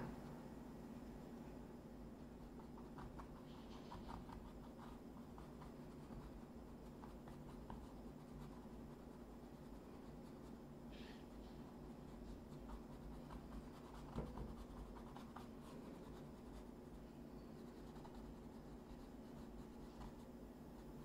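A paintbrush softly brushes across a canvas.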